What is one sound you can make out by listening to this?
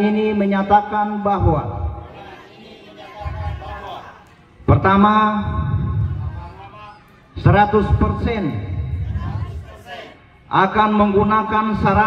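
A man speaks loudly and firmly through a microphone.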